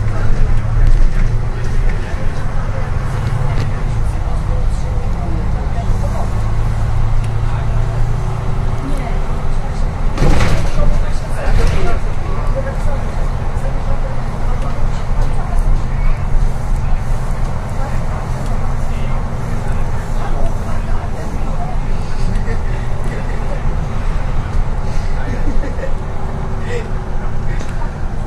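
A bus interior rattles and knocks over the road.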